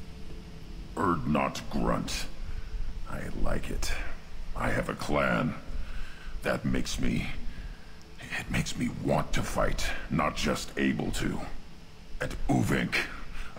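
A deep, gravelly male voice speaks forcefully, close up.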